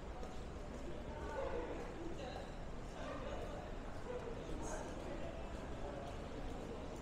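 Men and women talk at a distance.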